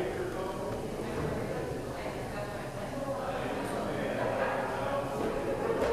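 Footsteps shuffle slowly across a floor.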